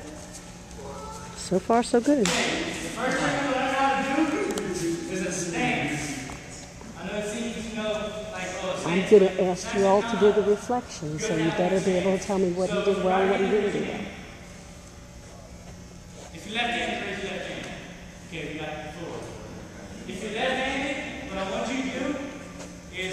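A young man instructs a class in a loud, clear voice in a large echoing hall.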